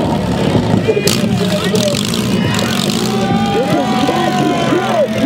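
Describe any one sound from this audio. A crowd of people cheers and shouts.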